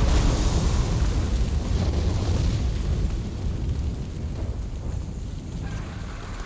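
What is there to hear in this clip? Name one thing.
A huge fiery blast roars with a deep, rumbling boom that slowly fades.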